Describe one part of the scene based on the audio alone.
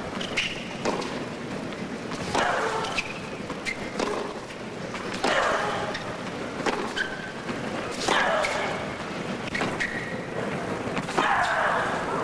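Tennis rackets strike a ball back and forth.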